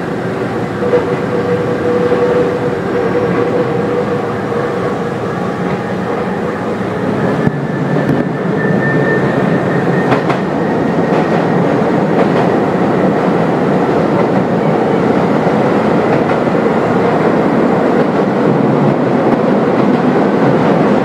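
A train rumbles steadily along the tracks, heard from inside the cab.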